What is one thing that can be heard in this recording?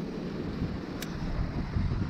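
A metal carabiner clicks shut on a rope.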